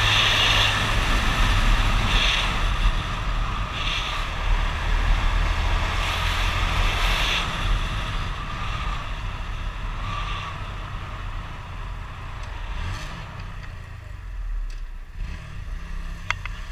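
Wind rushes past a helmet microphone.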